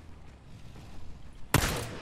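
A pistol fires a sharp shot.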